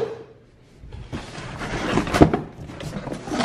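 Cardboard rustles as a box is handled.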